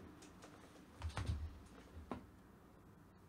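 Headphones are set down with a few knocks on a desk.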